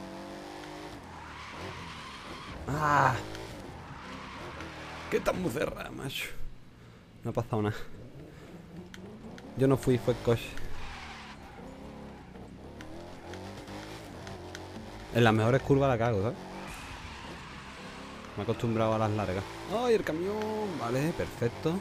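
Tyres screech as a car drifts.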